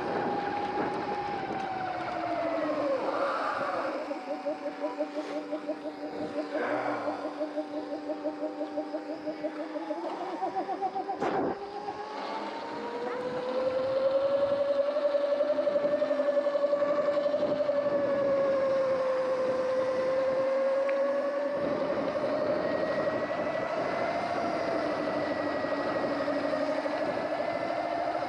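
Wind rushes past.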